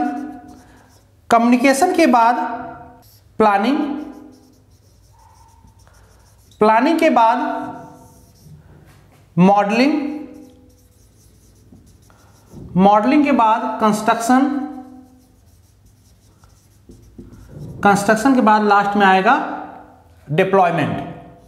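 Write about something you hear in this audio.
A man speaks in short bursts with pauses, like a teacher explaining.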